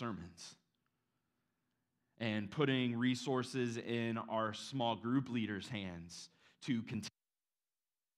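A man speaks calmly into a microphone, with animation.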